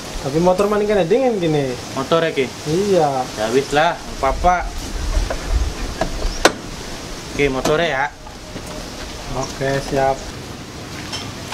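A young man speaks animatedly nearby.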